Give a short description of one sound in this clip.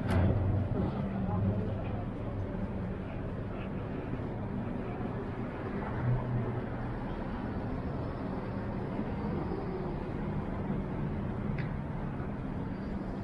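A steady low city hum carries outdoors on a quiet street.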